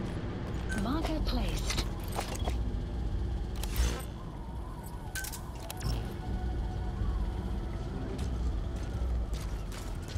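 Footsteps crunch on dry, sandy ground.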